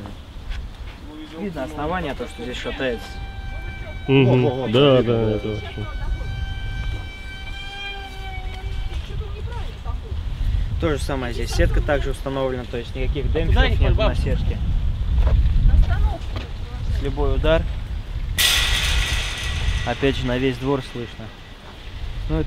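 A young man speaks with animation outdoors, close by.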